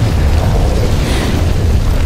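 A man speaks in a low, strained voice close by.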